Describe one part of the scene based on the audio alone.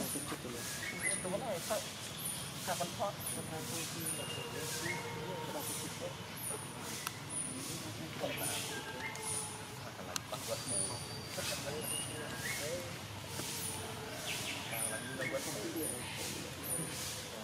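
A plastic wrapper crinkles as a small monkey handles it.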